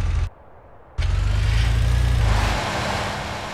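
A car engine roars up briefly.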